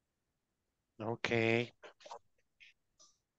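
A man speaks briefly through an online call.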